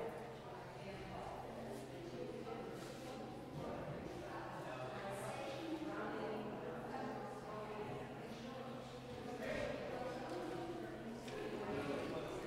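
A man reads aloud calmly in a large echoing hall.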